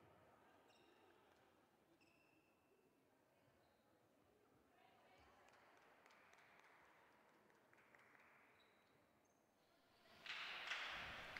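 Shoes squeak on a hard court floor in a large echoing hall.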